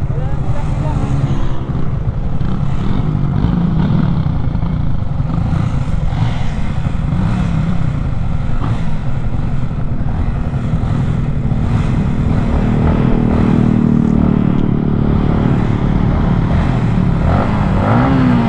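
A motorcycle engine hums and revs up and down as it rides along.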